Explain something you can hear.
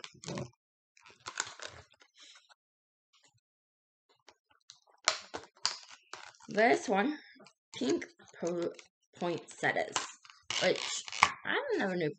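Plastic packaging crinkles in someone's hands.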